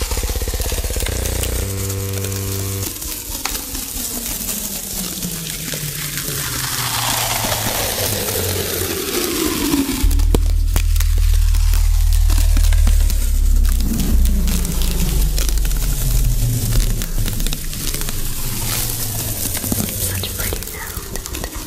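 Paper crinkles and rustles close to a microphone.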